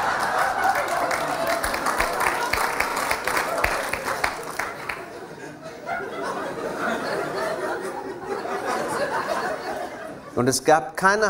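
A large audience laughs and applauds in an echoing hall.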